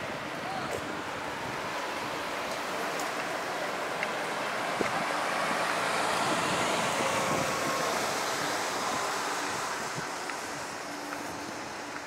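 A bus drives past, its sound swelling and then fading.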